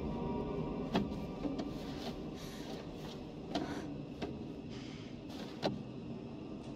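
Footsteps scrape slowly on a gritty floor.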